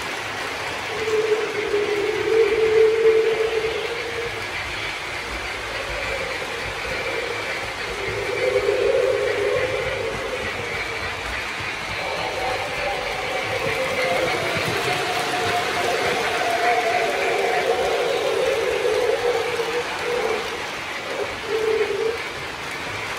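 A model train horn sounds in long tones.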